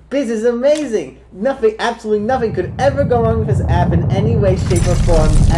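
A teenage boy talks and laughs with animation close by.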